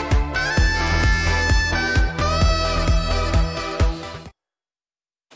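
A saxophone plays a lively tune.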